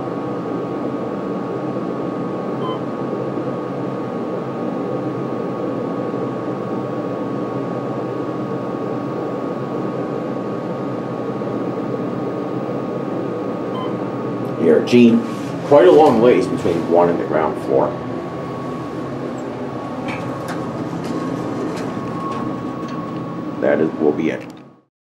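An elevator motor hums steadily.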